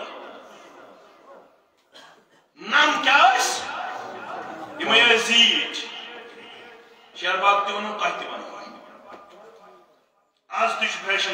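A middle-aged man preaches with animation through a microphone in an echoing room.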